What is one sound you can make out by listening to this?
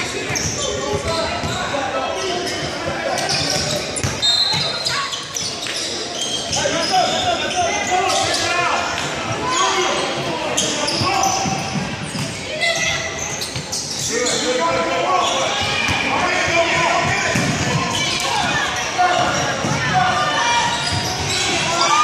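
Spectators chatter and call out, echoing in a large hall.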